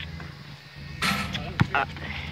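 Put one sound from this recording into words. A basketball bangs against a backboard.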